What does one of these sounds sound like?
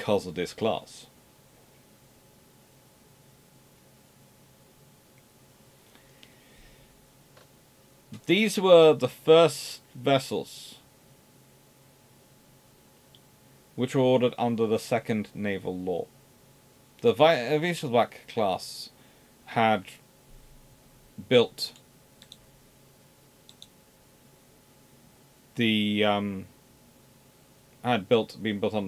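A man talks calmly into a close microphone, with pauses.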